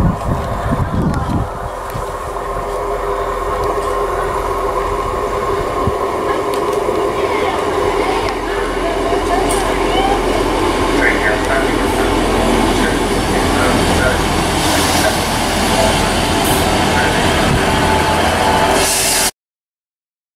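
A diesel train approaches and rumbles into the station, its engine droning.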